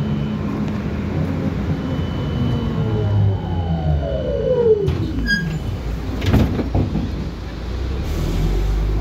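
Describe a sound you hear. Traffic passes by on the road outside.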